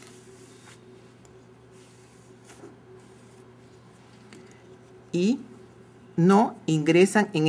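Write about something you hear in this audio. Yarn rustles softly as it is wound and pulled.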